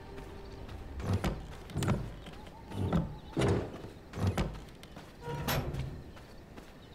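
A heavy gate creaks and thuds as it opens.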